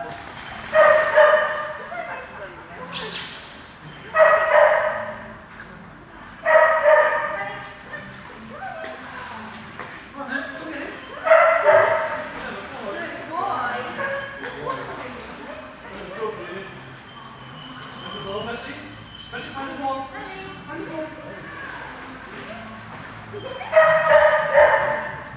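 Water splashes as a dog swims.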